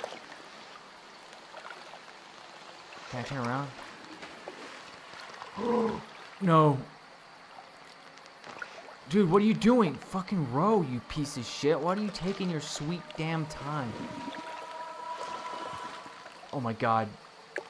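Waves wash softly against a small boat.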